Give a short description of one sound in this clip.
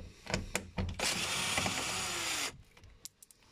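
A cordless drill whirs briefly.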